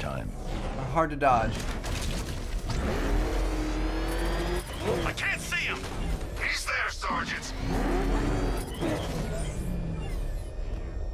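A powerful engine roars and revs.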